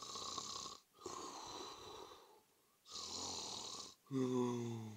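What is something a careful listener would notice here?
Bubbles gurgle and burble underwater.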